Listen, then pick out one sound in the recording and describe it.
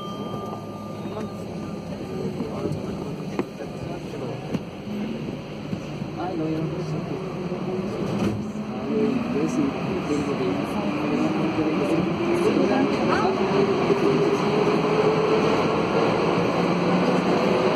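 A subway train rumbles as it pulls out of a station and speeds up into a tunnel, its motor whining higher.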